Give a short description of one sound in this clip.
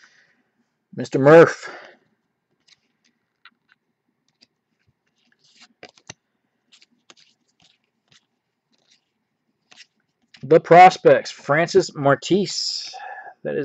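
Stiff trading cards rustle and flick softly as a hand sorts through them.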